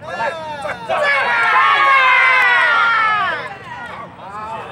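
A large crowd of men and women cheers and shouts together outdoors.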